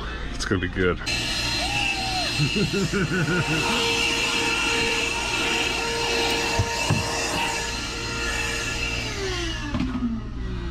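A handheld vacuum cleaner whirs steadily, then winds down.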